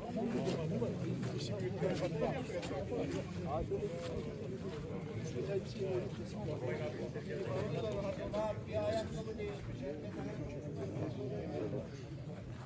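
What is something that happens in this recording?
A crowd of men murmur and talk in low voices outdoors.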